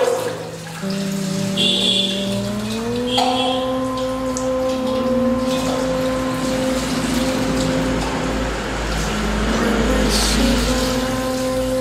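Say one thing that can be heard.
Water splashes as it is poured over a stone.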